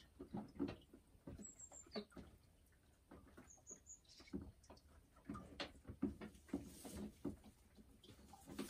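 A hen clucks softly close by.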